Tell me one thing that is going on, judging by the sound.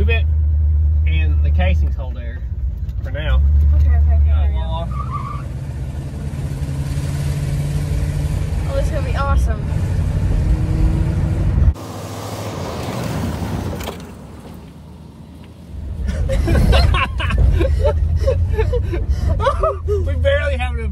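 A car engine rumbles and roars inside the car.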